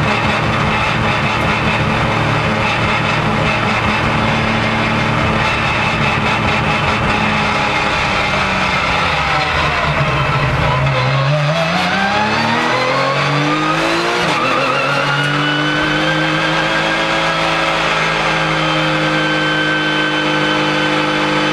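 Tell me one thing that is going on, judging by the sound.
A Porsche sports car engine slows, then accelerates hard through the gears, heard from inside the cabin.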